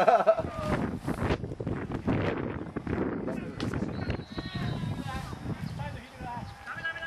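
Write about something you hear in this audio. A man talks close by, outdoors.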